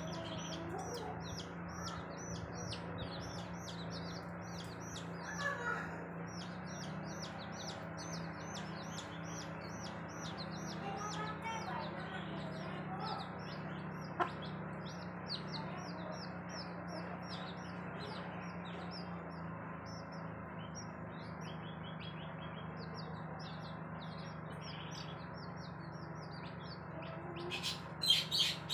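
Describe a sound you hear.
Chicks peep rapidly and continuously close by.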